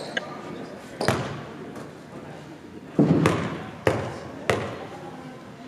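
A basketball bounces on a hard floor in a large echoing hall.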